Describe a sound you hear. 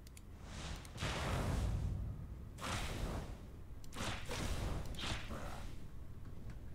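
Flames whoosh in short bursts.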